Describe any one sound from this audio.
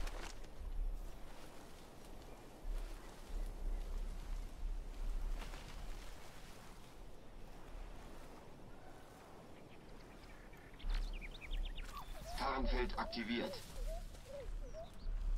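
Footsteps rustle through dense leaves and grass.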